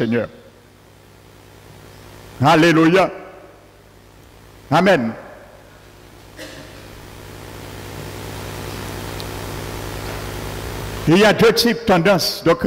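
A middle-aged man speaks through a headset microphone over loudspeakers in an echoing room, pausing between phrases.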